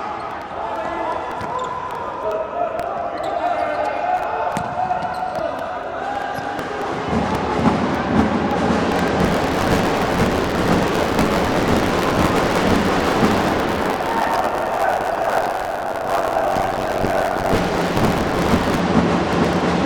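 A ball is kicked on a hard indoor court.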